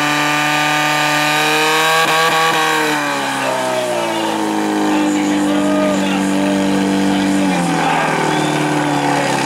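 A pump engine roars loudly nearby, its pitch dropping now and then.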